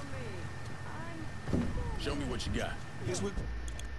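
Van doors swing open.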